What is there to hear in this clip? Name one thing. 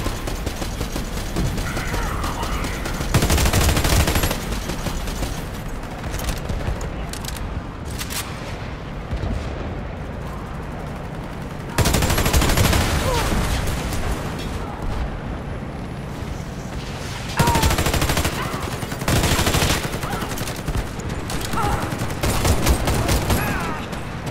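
Rifle shots crack in loud, rapid bursts.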